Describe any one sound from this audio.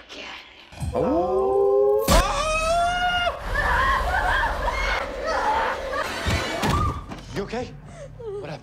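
A young man screams loudly and excitedly close to a microphone.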